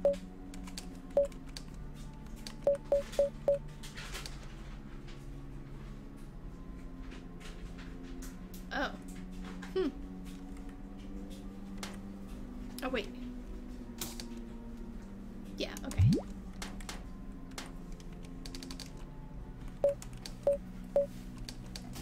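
Short electronic menu beeps blip one after another.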